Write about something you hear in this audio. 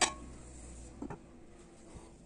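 A glass lid clinks down onto a glass bowl.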